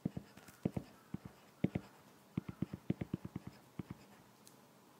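A stylus taps and clicks quickly against a tablet's glass.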